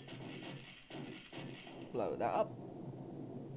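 Guns fire in short bursts.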